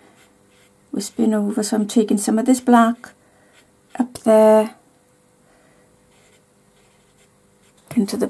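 A brush dabs softly on paper.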